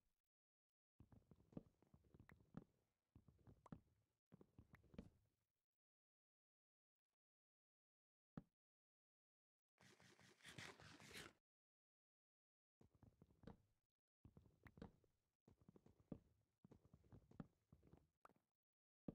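Wooden blocks thud and crack as they are chopped with an axe.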